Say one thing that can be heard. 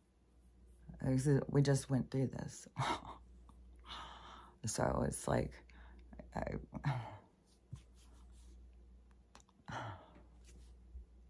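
A middle-aged woman speaks close by, with animation and pauses.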